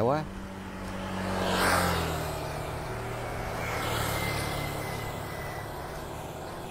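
A motorbike engine drones as it passes close by and fades away.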